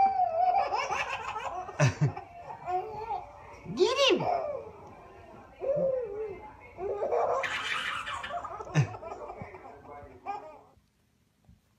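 A baby girl laughs and squeals loudly close by.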